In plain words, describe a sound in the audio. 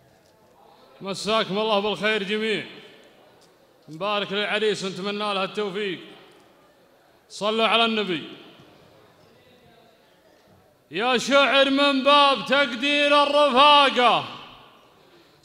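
A young man chants a melodic poem into a microphone in phrases, heard through loudspeakers in a large hall.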